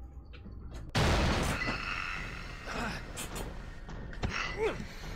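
A young man shouts loudly, close to a microphone.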